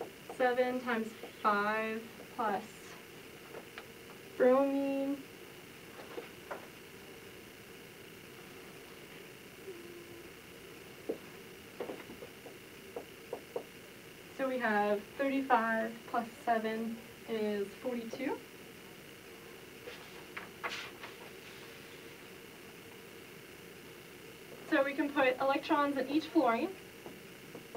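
A young woman speaks calmly, pausing between phrases.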